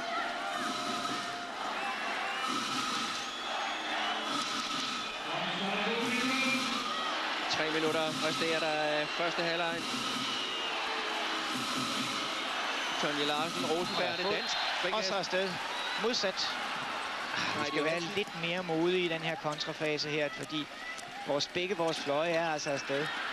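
A handball bounces on the court.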